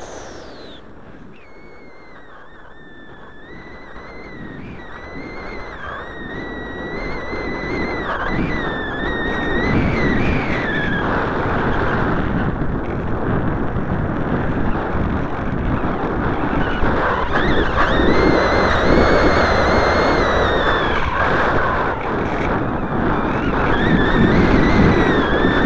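A small model plane's electric motor whines steadily, rising and falling in pitch.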